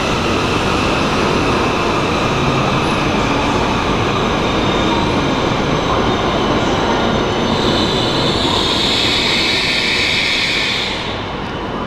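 A high-speed train rushes past close by with a loud roar and whine.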